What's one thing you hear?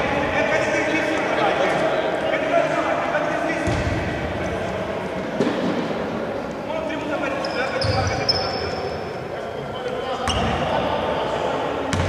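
Men call out to each other across the hall.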